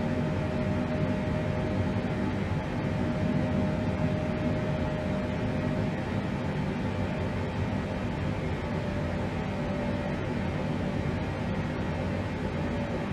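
An aircraft's engines drone steadily from inside the cabin.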